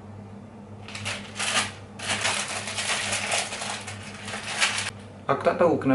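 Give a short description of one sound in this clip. A plastic instant noodle packet crinkles and tears open.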